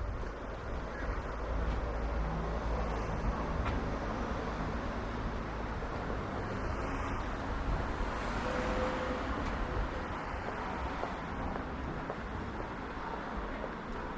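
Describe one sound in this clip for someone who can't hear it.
Outdoor street noise hums steadily with a light breeze.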